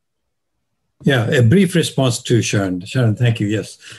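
An elderly man speaks steadily over an online call.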